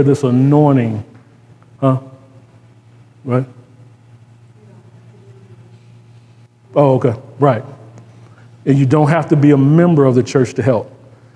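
A man speaks with animation into a microphone, with pauses.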